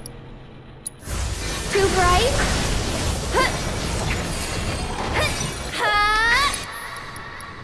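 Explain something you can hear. Electric magic bolts crackle and zap in bursts.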